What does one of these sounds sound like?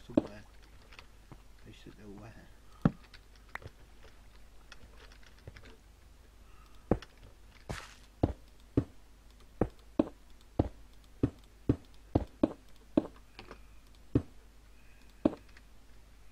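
Footsteps tap on stone at a steady pace.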